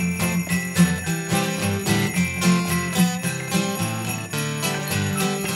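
A woman sings into a microphone.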